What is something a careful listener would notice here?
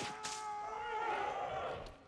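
A young man shouts nearby.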